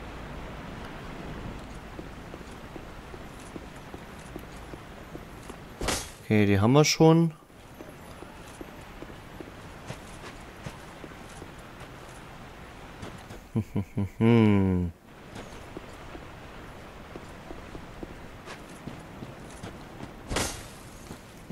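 Armoured footsteps clatter quickly on stone.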